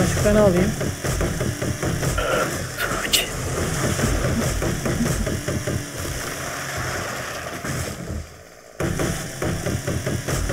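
A chainsaw buzzes as it cuts into a tree trunk.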